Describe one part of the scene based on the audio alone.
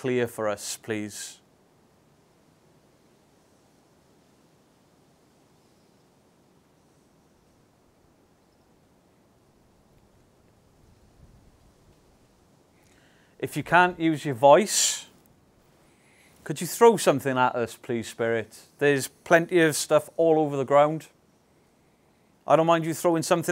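A man speaks in a low voice close by, in short bursts with long pauses.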